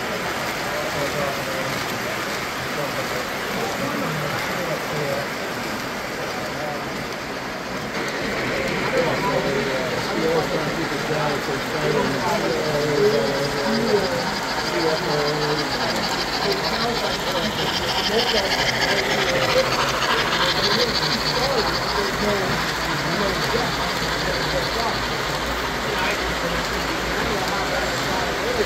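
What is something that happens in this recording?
Model trains rumble and clatter along metal tracks.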